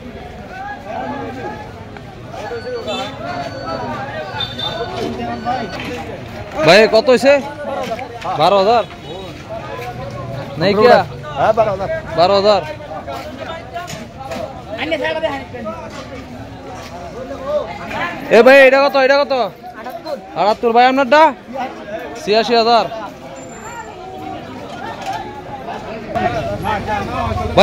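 A crowd of men chatters outdoors in the background.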